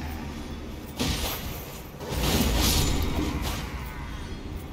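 A sword strikes with heavy blows.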